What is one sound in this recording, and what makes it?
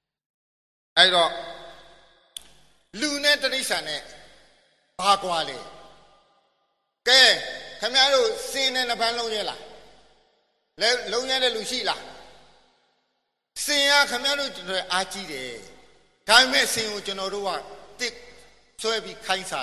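An elderly man speaks with animation, in short bursts with pauses.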